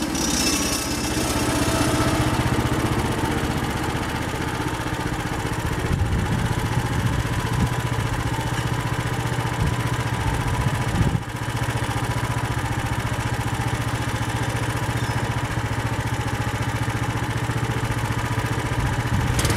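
A band saw blade whirs as it cuts through a log.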